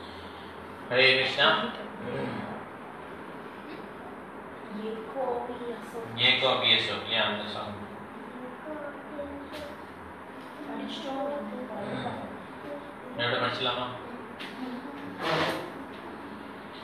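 A middle-aged man speaks calmly and slowly into a close microphone, with pauses.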